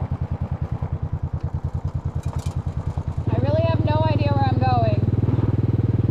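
Motorcycle tyres crunch over gravel.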